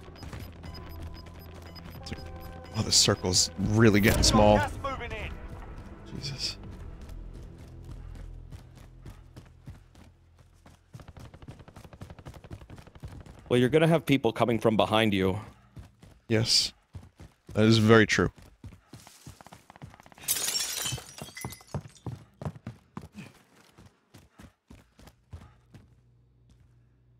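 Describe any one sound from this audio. Footsteps run quickly over ground and hard floors.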